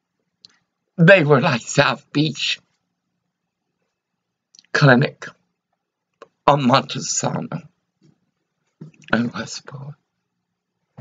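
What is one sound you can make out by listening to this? An elderly woman speaks calmly and close by, in short bursts.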